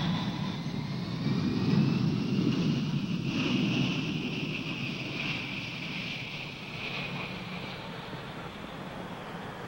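Jet engines roar loudly as an airliner speeds down a runway and slowly fades.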